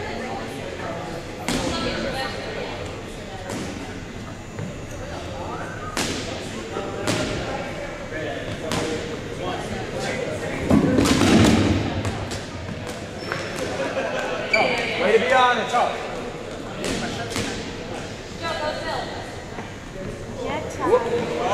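Rubber balls bounce and smack on a hard floor in a large echoing gym.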